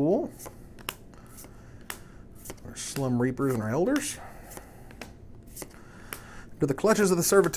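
Playing cards click and snap as they are handled.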